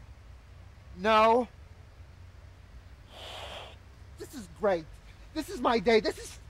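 A young man cries out loudly and with strain, close by.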